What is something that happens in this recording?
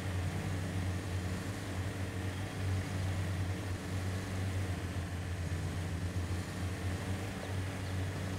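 An off-road vehicle's engine rumbles low and steady as it climbs over rocks.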